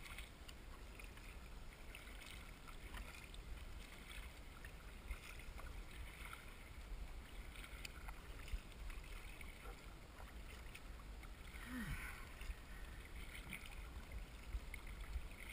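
A paddle blade dips and splashes in the water.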